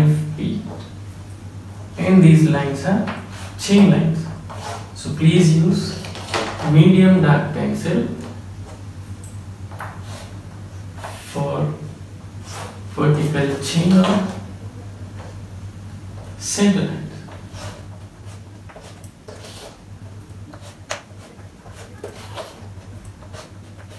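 Chalk scrapes and taps against a board.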